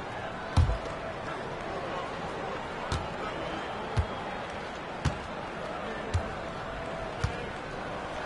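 A basketball bounces on a hardwood floor at a slow, steady pace.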